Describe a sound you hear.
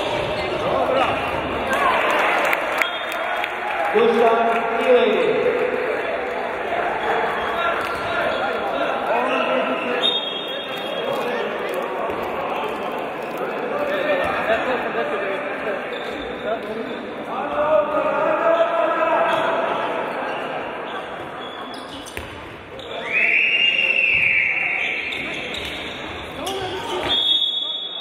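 Spectators murmur and call out in the background.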